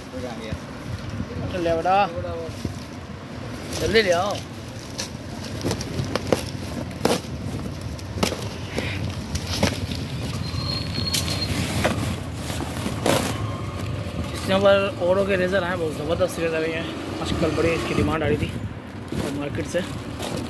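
Hands rummage through cardboard boxes, rustling and knocking.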